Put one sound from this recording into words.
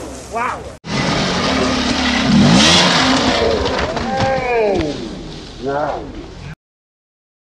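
A dirt bike engine revs hard as it climbs a steep slope.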